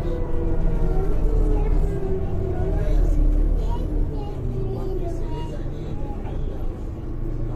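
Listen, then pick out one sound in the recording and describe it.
A bus engine rumbles low and steady.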